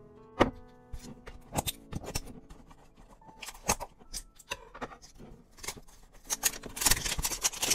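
A box's cardboard rustles and taps as a hand handles it.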